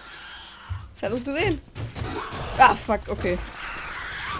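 A young woman cries out with excitement close to a microphone.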